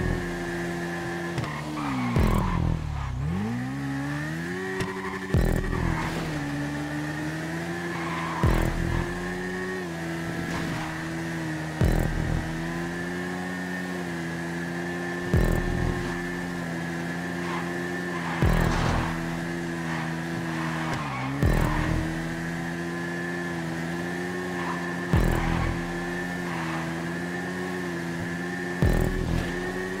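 A motorcycle engine drones steadily, dropping in pitch as it slows for a corner and then revving back up.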